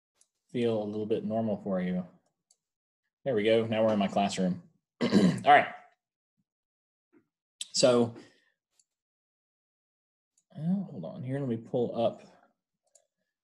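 A middle-aged man speaks calmly in short phrases through an online call.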